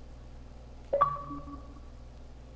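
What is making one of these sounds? A short notification chime sounds.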